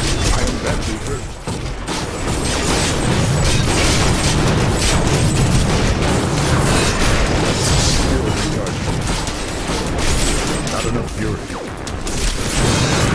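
Spell blasts and crackling magic effects burst continuously in a game battle.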